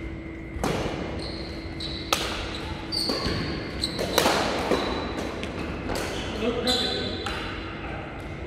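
Rackets strike a shuttlecock with sharp pops, echoing in a large hall.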